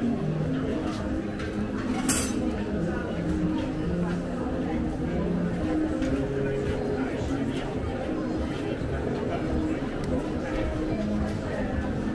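Footsteps tap on paving stones nearby.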